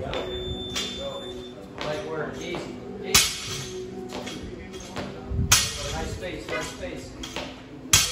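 Barbell plates clank as a weight is lifted.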